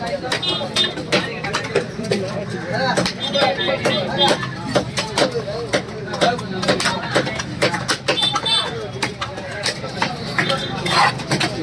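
Wet fish pieces slap onto a wooden block.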